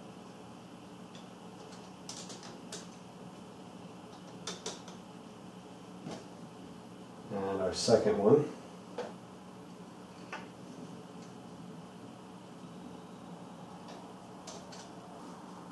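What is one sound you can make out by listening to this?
Small plastic parts click and tap together as they are fitted by hand.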